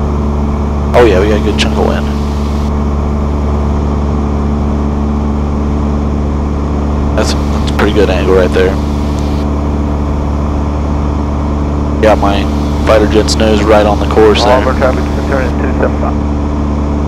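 A man speaks calmly through a headset radio.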